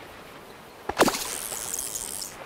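Water splashes as a fish is pulled from the water.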